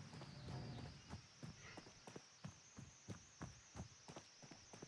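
Heavy footsteps thud steadily on the ground.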